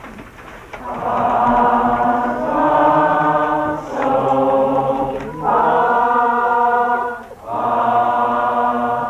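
A woman sings a scale of notes, one syllable at a time.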